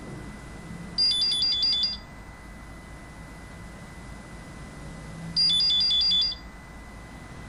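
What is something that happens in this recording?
A telephone rings in short, shrill bursts.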